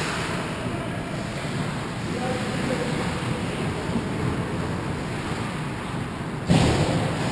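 Ice skates scrape and glide across the ice in a large echoing rink.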